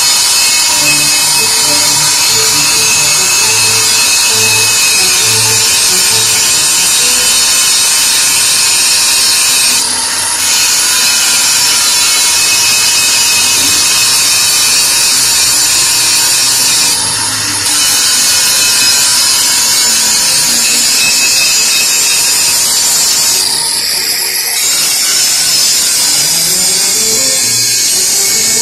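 An angle grinder whines loudly as its disc cuts into metal.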